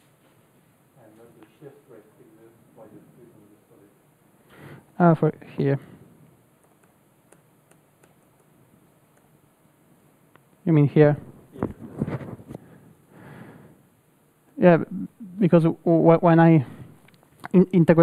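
A young man speaks calmly in a room, pausing between phrases.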